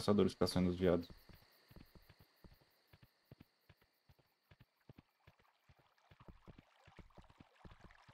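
A horse's hooves clop steadily at a walk.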